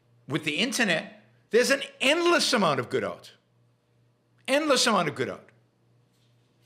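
An older man speaks calmly and close to a microphone, as if on an online call.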